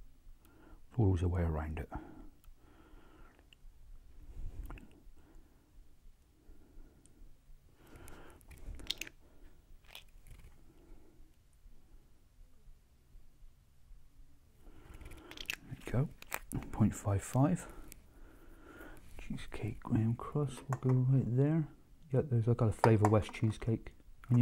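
A middle-aged man speaks calmly close by.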